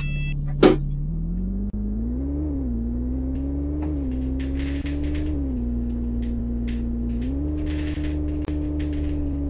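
A bus engine revs up and changes gear as the bus pulls away.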